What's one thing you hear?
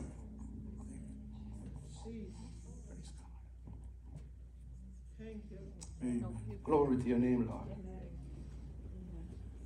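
An elderly man speaks to a gathering through a microphone and loudspeaker in an echoing hall.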